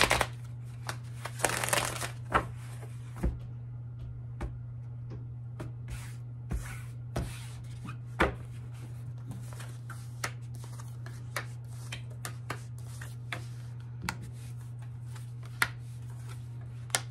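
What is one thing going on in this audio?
Cardboard and cards rustle and tap as they are handled up close.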